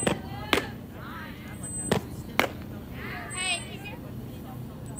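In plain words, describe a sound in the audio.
Young girls shout and cheer outdoors across a ball field.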